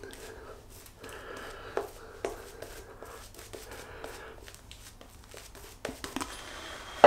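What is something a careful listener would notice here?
A shaving brush swishes lather across stubbled cheeks.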